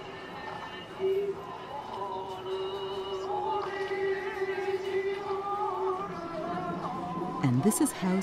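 A bamboo flute plays a slow, wavering melody.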